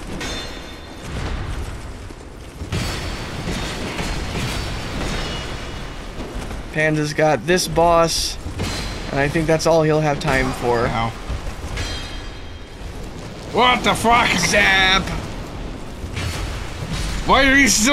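Metal weapons clang against shields.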